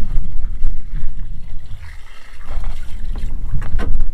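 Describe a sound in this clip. Water pours from a watering can into a bucket.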